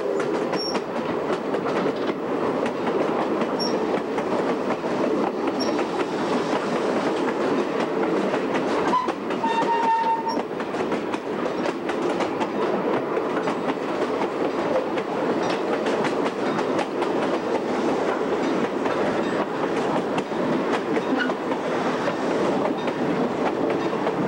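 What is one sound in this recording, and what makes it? A train rumbles and clatters steadily along the tracks, heard up close from a moving car.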